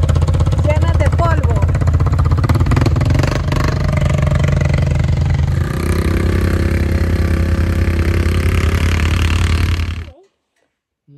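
A quad bike engine rumbles loudly and revs.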